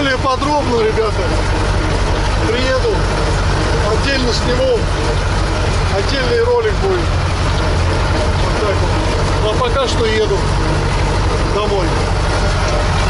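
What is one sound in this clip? A middle-aged man talks with animation, close by.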